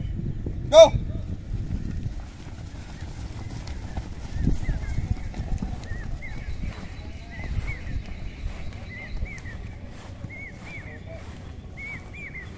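Many feet thud softly on grass as a group runs.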